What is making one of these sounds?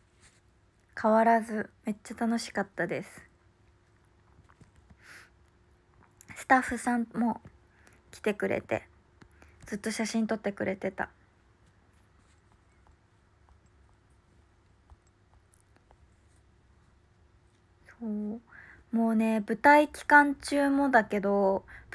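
A young woman talks softly and close to a phone microphone, in short bursts with pauses.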